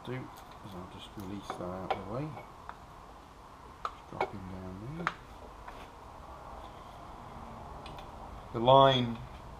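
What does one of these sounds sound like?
Metal tools clink and knock against engine parts.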